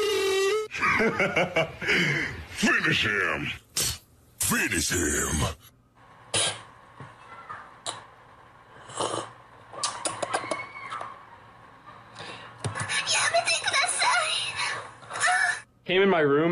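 A young man laughs loudly, heard through a phone recording.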